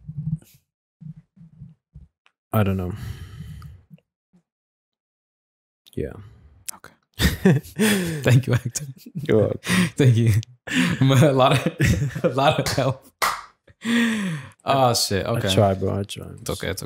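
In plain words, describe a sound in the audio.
Young men talk with animation into close microphones.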